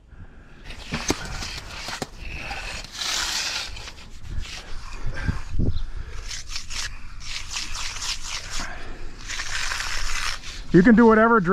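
A hand trowel scrapes across wet concrete.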